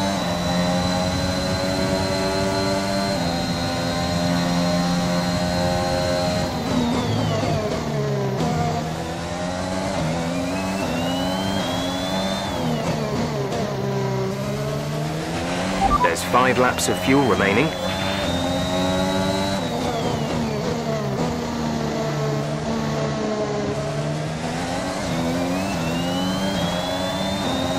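A racing car engine screams at high revs, dropping in pitch under braking and rising again as it accelerates.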